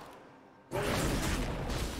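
A sword swings and slashes in quick strikes.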